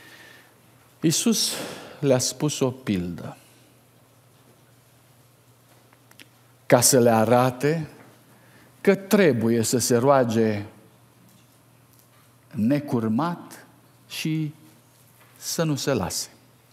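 A middle-aged man speaks slowly and earnestly into a microphone, with pauses.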